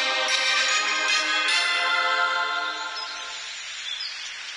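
A game plays a bright fanfare as a building upgrade finishes.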